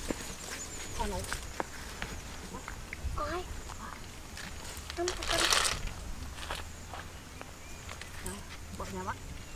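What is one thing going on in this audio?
A woman talks nearby in a calm voice.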